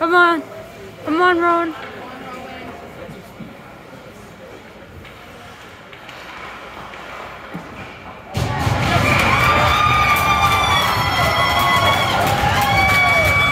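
Skate blades scrape across the ice.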